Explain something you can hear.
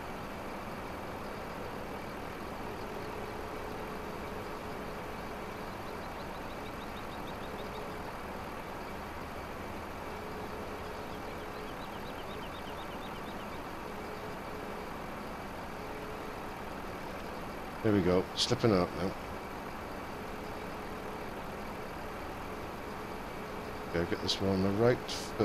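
A machine engine hums steadily.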